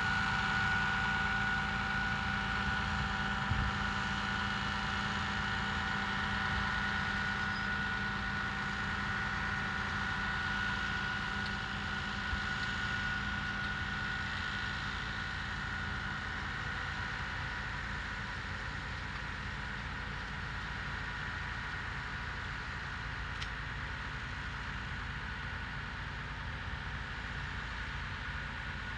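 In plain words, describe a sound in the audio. A diesel engine drones steadily and slowly fades.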